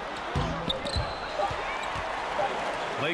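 A basketball bounces on a hardwood floor in regular thuds.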